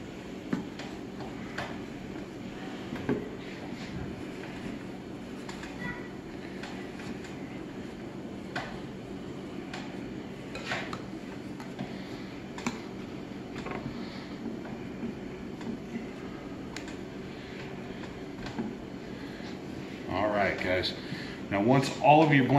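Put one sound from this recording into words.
Hands press and rustle soft insulation into a metal box.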